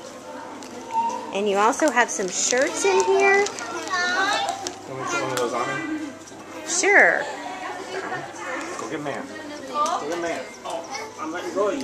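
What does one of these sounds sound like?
Young children talk and squeal excitedly close by.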